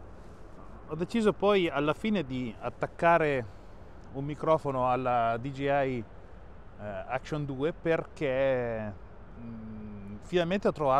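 A man talks with animation close to a clip-on microphone.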